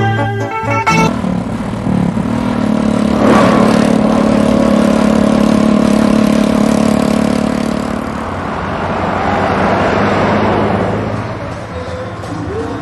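A motorcycle engine drones steadily as it rides past.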